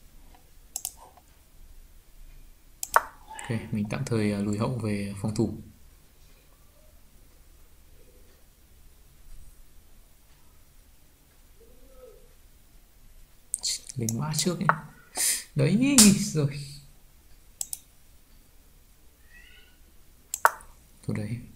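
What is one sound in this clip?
A game piece clicks into place with a short tap.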